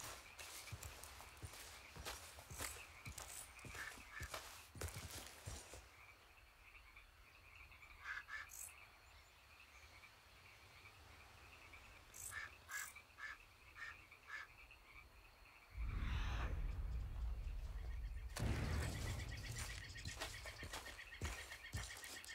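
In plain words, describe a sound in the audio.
Footsteps scuff and crunch over rock and grass.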